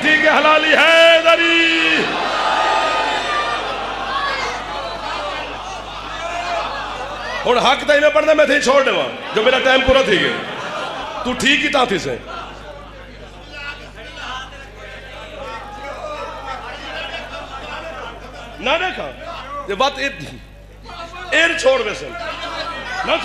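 A man recites with passion through a loudspeaker, his voice echoing in a large hall.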